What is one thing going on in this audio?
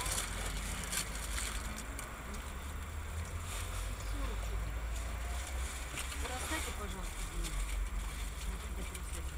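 Traffic drives past on a road.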